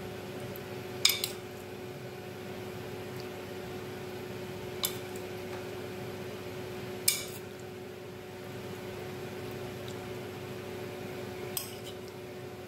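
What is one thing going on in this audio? A metal spoon clinks against a glass dish.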